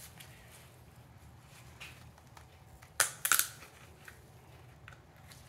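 Metal parts clink and rattle as they are handled.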